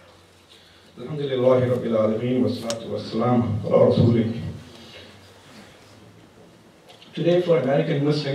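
A man speaks slowly into a microphone, heard close.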